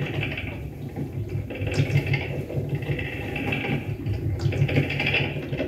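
Electronic music with a low pulsing drone plays through loudspeakers.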